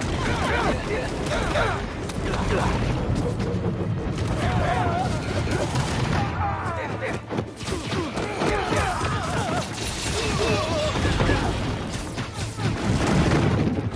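Punches and blows thud during a fight.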